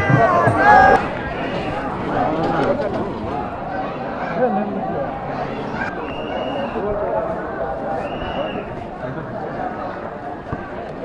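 Men talk in low voices nearby.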